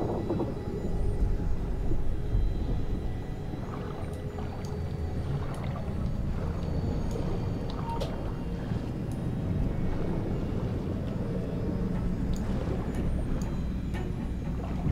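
Water rumbles and churns steadily, as if heard underwater.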